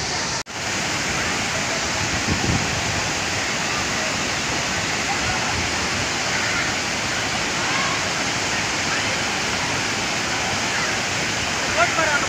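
A crowd of people chatters and calls out in the distance.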